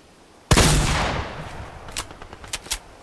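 A gunshot cracks loudly and echoes away.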